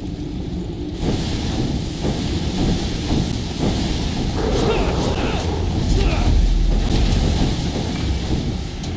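Blasts and sharp impacts burst during a fight.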